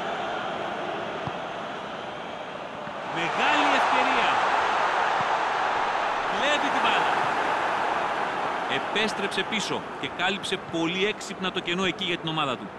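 A large stadium crowd cheers and roars steadily, swelling louder partway through.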